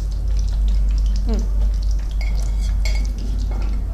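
A knife scrapes against a plate.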